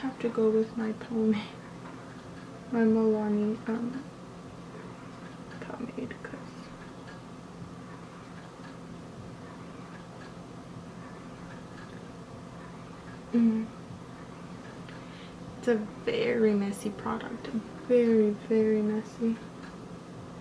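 A young woman talks calmly and closely into a microphone, in short bursts with pauses.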